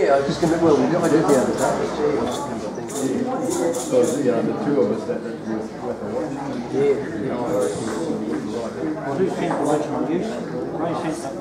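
An upright double bass plucks a walking bass line.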